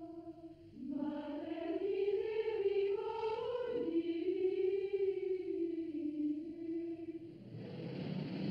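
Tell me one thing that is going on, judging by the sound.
A woman sings a slow, drawn-out melody.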